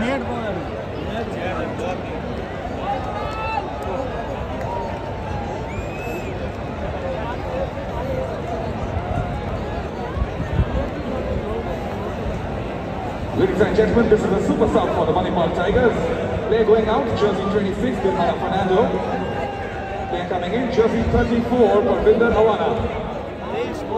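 A large stadium crowd murmurs and chatters throughout, loudening after a while.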